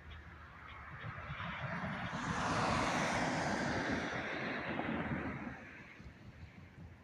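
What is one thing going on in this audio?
A second car drives past close by with a rising and fading whoosh.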